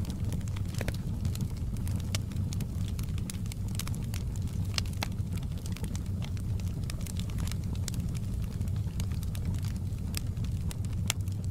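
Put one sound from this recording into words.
Burning wood crackles and pops sharply and often.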